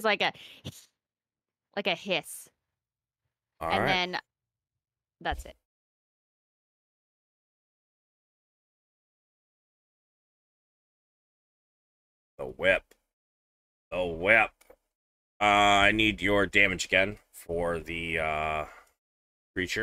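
A man talks with animation into a close microphone, in short bursts with pauses.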